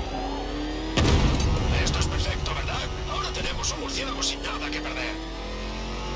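Debris crashes and clatters as a car smashes through it.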